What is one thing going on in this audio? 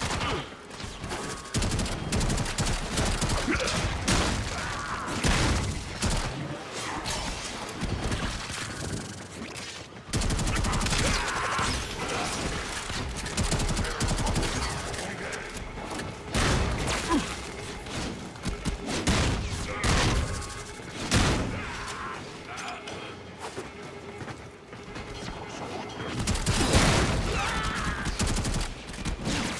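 Blades slash and clang against enemies in quick, repeated strikes.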